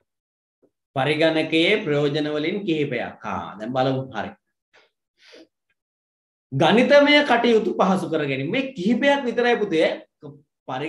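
A young man speaks calmly through an online call, pausing between phrases.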